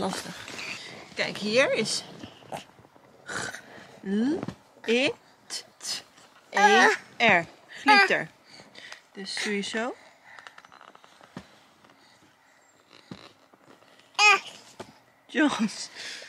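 A baby babbles and coos.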